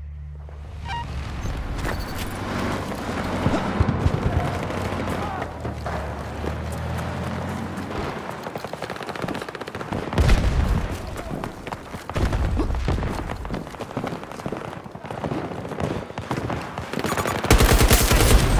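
Boots run quickly over gravel and dirt.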